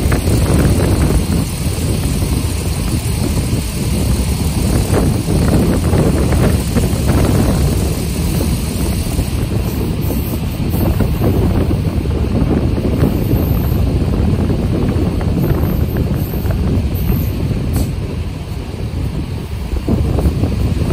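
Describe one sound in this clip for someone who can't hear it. Wind buffets past an open train window.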